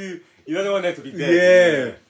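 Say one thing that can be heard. A young man claps his hands.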